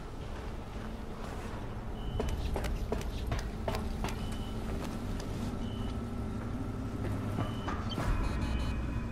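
Footsteps clang on a metal ladder and walkway.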